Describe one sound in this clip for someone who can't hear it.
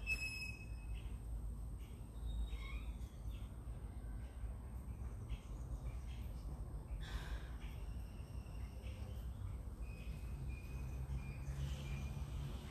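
A woman gulps water from a bottle.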